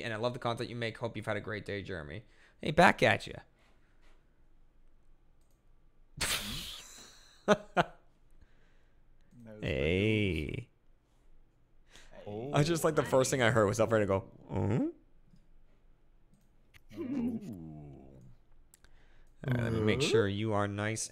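A man talks casually and close into a microphone, with pauses.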